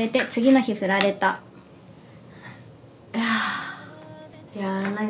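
A young woman speaks brightly, close to a microphone.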